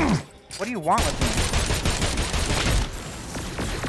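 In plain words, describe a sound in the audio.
Rapid gunfire bursts close by.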